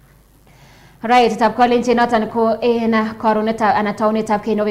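A woman speaks calmly and clearly into a close microphone, like a news presenter.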